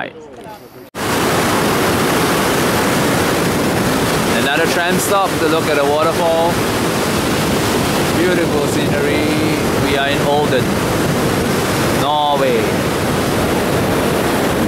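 A fast river rushes loudly over rocks.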